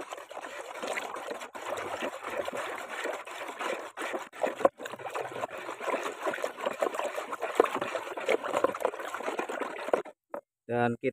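Liquid sloshes and swirls as a stick stirs it in a bucket.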